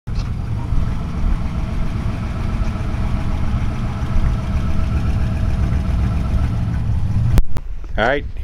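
An old car engine idles with a low rumble as the car rolls slowly forward.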